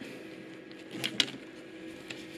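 A resin part snaps off a metal plate.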